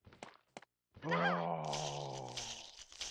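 A zombie lets out a low, drawn-out moan.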